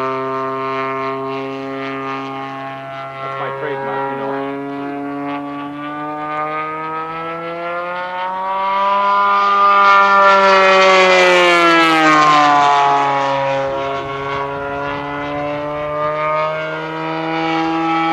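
A small propeller plane's engine drones steadily overhead, growing louder and higher as it passes close, then dropping in pitch as it moves away.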